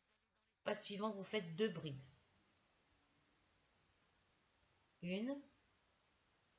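An elderly woman speaks calmly close to the microphone.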